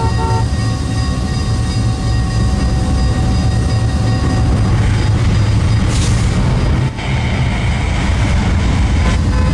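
Diesel locomotive engines rumble low and steadily.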